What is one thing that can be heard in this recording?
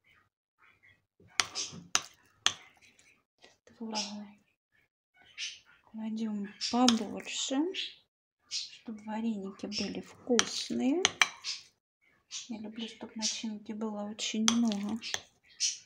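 A metal spoon clinks and scrapes against a bowl.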